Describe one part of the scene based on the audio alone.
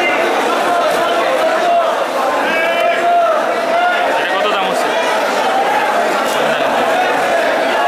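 A crowd of men chatter and talk nearby.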